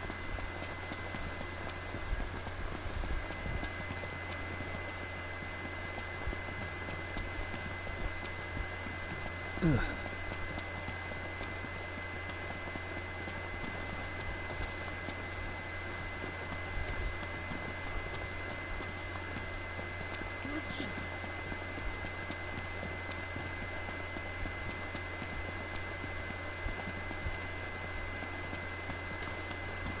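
Footsteps run quickly over grass and gravel.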